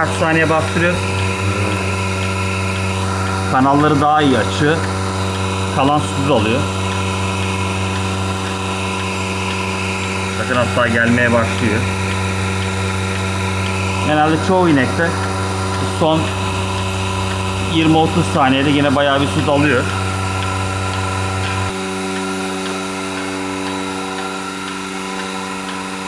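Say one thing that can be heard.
A milking machine pump hums steadily.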